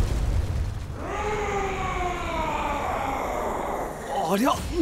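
A giant creature roars loudly.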